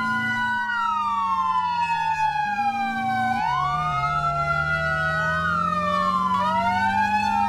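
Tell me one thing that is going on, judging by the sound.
A fire truck's siren wails.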